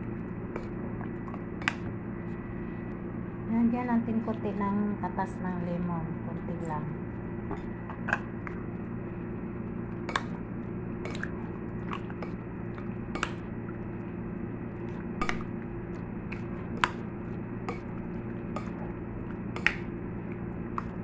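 Wet food squelches as it is stirred.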